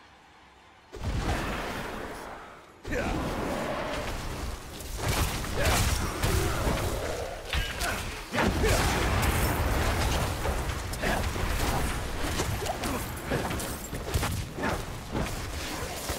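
Game combat effects clash, crackle and thump.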